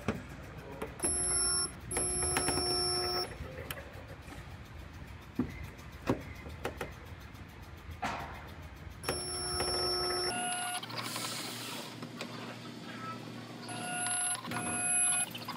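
A spot welder buzzes loudly in short bursts.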